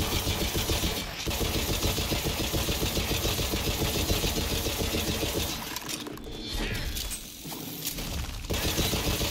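A rapid-fire energy gun fires in fast, steady bursts.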